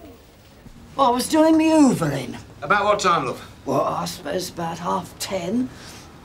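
An elderly woman talks.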